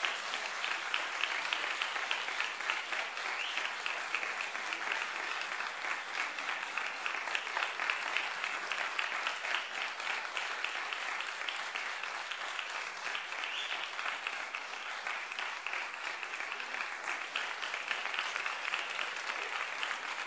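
A large audience claps steadily.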